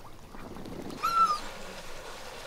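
A dog barks once nearby.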